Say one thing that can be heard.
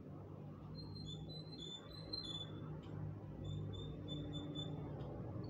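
A small bird chirps in short, high, repeated notes close by.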